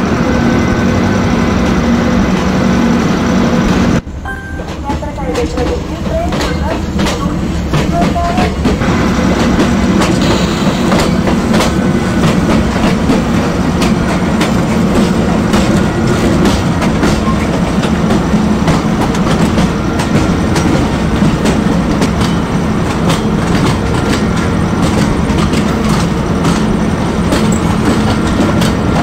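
An electric locomotive hums and rumbles steadily.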